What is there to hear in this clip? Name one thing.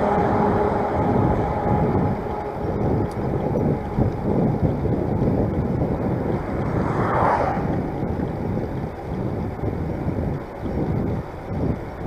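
Wind buffets the microphone outdoors, rumbling steadily.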